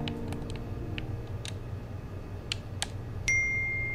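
Game controller buttons click rapidly.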